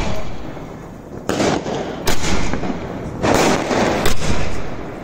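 Fireworks crackle and sizzle as sparks fall.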